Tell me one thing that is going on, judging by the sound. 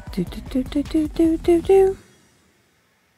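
A short, cheerful game jingle plays a run of rising notes and then stops.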